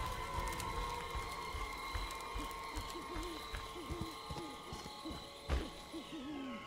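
Heavy footsteps thud slowly on a dirt path.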